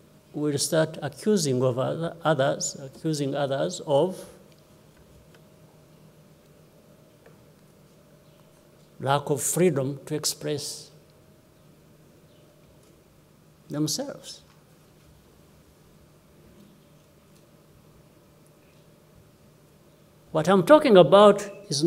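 A middle-aged man speaks slowly and calmly into a microphone, with long pauses, heard through a loudspeaker.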